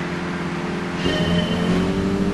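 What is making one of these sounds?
A racing car engine revs up loudly.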